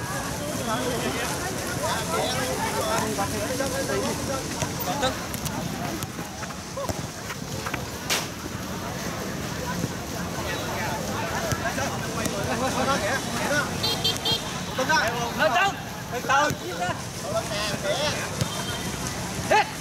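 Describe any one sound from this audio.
Men shout to each other across an outdoor pitch.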